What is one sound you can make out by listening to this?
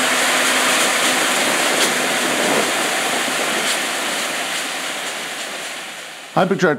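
A combine harvester's engine roars steadily up close and slowly fades.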